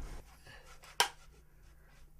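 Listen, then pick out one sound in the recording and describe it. A clapperboard snaps shut.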